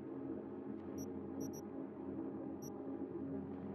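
Short high electronic beeps sound as menu items are selected.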